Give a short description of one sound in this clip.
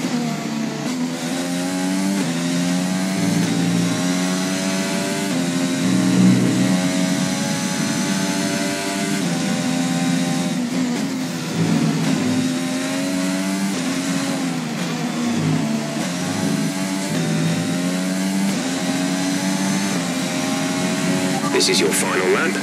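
A racing car engine screams at high revs, rising and dropping with each gear change.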